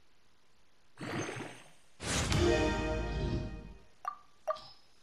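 A bright shimmering fanfare swells and fades as an item levels up.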